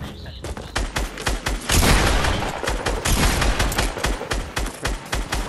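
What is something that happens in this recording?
Rapid gunfire rings out in quick bursts.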